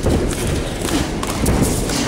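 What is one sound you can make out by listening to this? Punches and kicks thud against a fighter's body.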